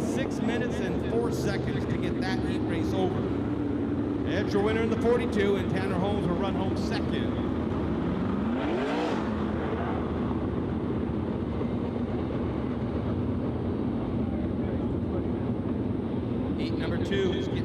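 A race car engine roars steadily.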